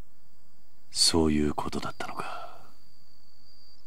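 A man says a few words in a low, thoughtful voice.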